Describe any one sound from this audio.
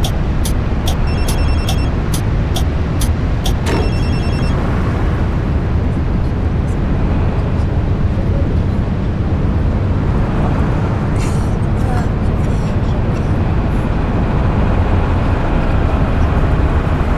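Rain patters on a windshield.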